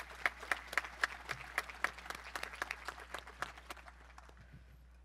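A crowd applauds outdoors, fading away.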